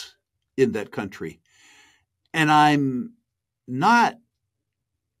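A middle-aged man speaks calmly through a microphone on an online call, in short bursts.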